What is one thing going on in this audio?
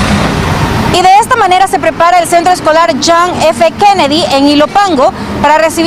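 A young woman speaks clearly into a handheld microphone.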